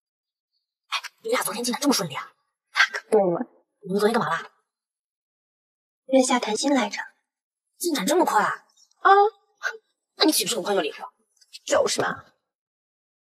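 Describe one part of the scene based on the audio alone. A young woman asks questions with animation up close.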